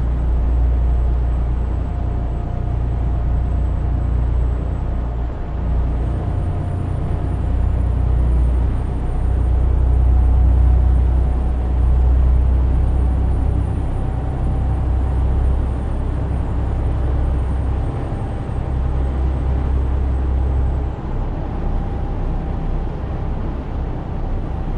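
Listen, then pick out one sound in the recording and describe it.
A truck engine hums steadily in a low, deep drone.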